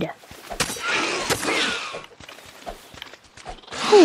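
A spear strikes a creature with sharp blows.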